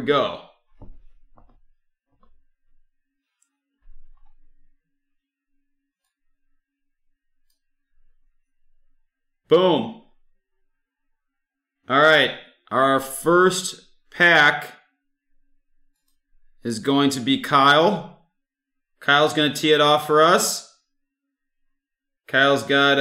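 A young man talks casually and close to a microphone, in short bursts with pauses.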